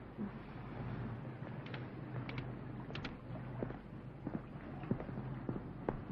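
Footsteps tap softly on pavement outdoors.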